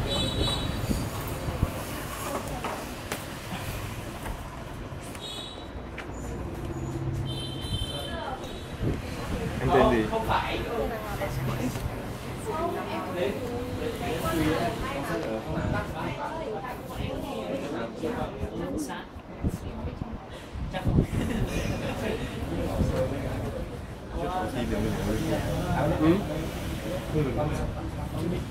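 Young people talk nearby.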